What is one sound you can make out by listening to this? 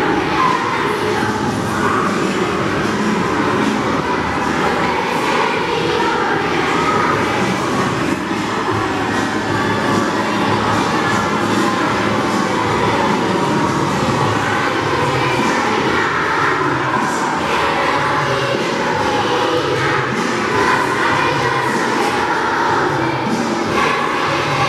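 A choir of children sings together in a large echoing hall.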